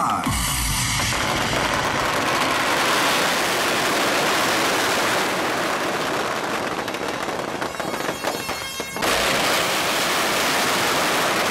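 Firecrackers crackle and bang rapidly in a dense, continuous barrage.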